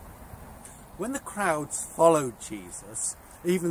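A middle-aged man speaks calmly and clearly, close by.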